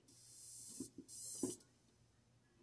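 A television hisses loudly with static.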